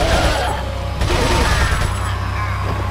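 A pistol fires a shot with a loud bang.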